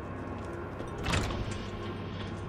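A heavy door bangs open.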